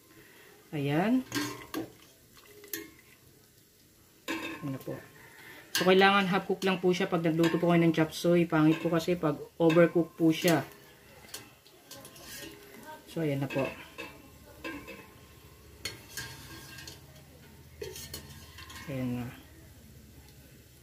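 A metal strainer clinks against the side of a pot.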